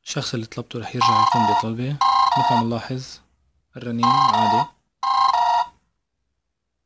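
A phone plays a ringtone in short repeating bursts.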